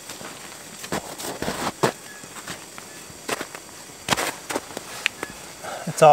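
Footsteps crunch in snow.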